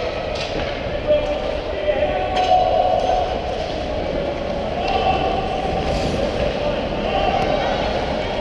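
Hockey sticks tap and click on the ice.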